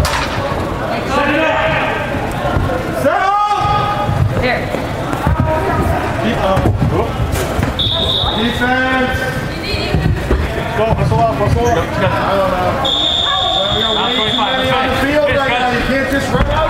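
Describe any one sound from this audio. Boys shout to each other in a large echoing indoor hall.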